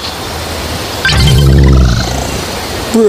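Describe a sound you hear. A crocodile growls deeply.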